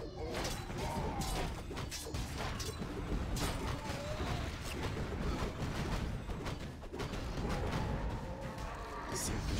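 Game sounds of fighting clash and crackle.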